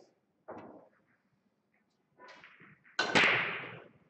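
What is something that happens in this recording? Pool balls clack together.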